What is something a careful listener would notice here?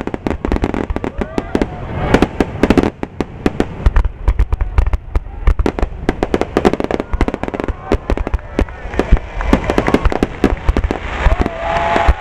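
Fireworks crackle and pop rapidly.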